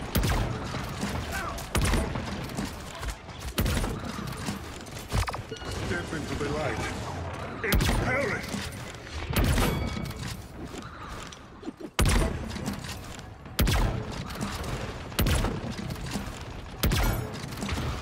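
Rifle shots crack out sharply, again and again, each with a short ringing tail.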